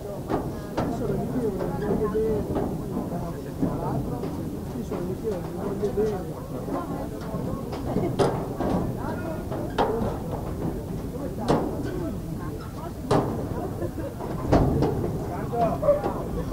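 A crowd of spectators claps and cheers outdoors.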